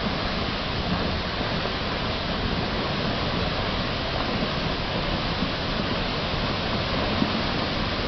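Rocks and earth rumble steadily down a slope in a landslide.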